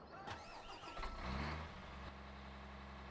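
A tractor's diesel engine starts up.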